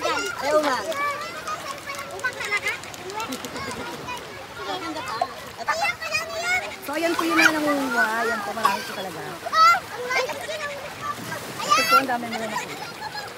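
Young children chatter and shout excitedly close by.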